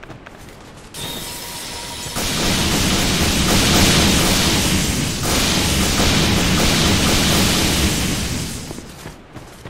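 Lightning crackles and roars loudly.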